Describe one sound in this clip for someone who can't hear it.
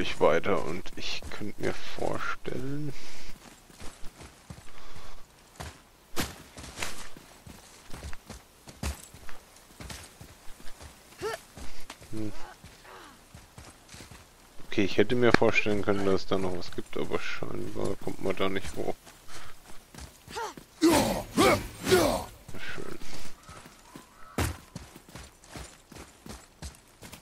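Heavy footsteps tread on rocky ground.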